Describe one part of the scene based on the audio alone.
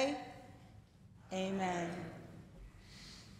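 A woman speaks with animation through a microphone in an echoing room.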